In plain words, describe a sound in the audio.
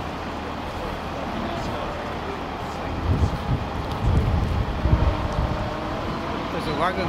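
Heavy lorry engines rumble and idle steadily nearby.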